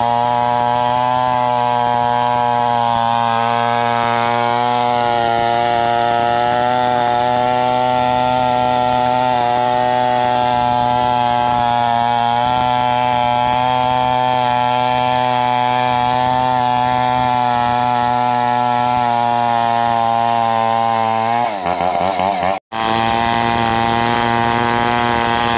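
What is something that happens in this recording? A gasoline chainsaw runs at full throttle, cutting lengthwise through a coconut log.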